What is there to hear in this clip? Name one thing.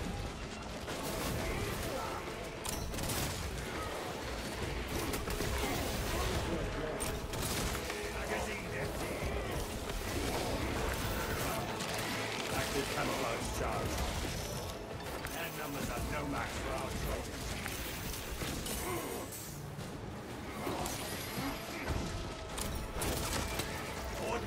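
Blades clash and slash against armour.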